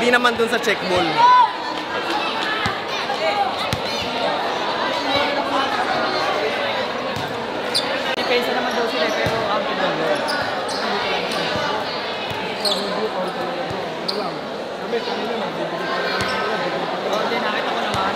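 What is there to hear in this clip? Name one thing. A large crowd chatters and cheers.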